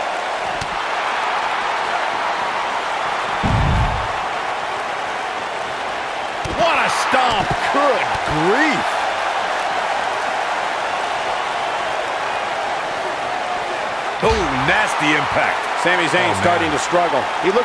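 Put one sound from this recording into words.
A large crowd roars and cheers steadily throughout.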